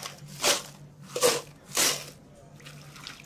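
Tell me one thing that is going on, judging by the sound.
Ice cubes clatter into a plastic cup.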